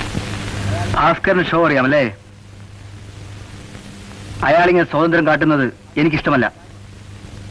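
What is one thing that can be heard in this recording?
A man speaks loudly and with feeling, close by.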